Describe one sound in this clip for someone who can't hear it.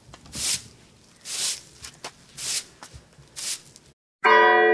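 A small trowel scrapes and scoops loose soil.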